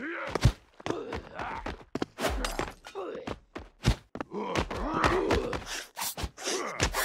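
Blows land with sharp, wet thuds as a weapon strikes figures in a game.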